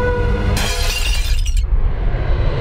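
Glass shatters and scatters loudly.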